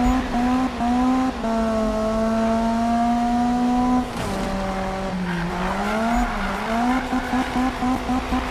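A car engine revs loudly, its pitch rising and falling with gear changes.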